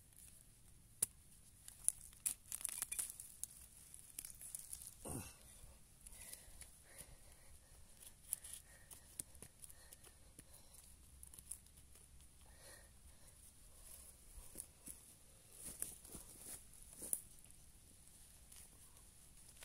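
A small hand trowel scrapes and digs into loose soil.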